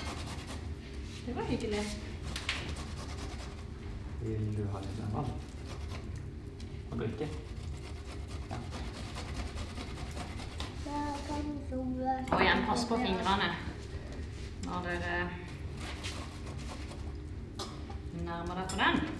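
A grater scrapes against food.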